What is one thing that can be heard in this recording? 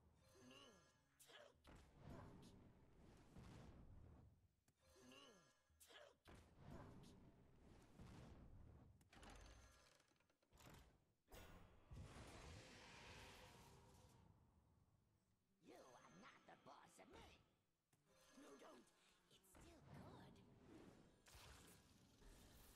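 Short game sound effects chime and whoosh.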